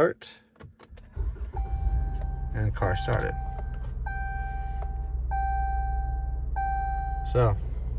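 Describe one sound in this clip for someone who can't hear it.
A car engine starts and idles with a steady low rumble.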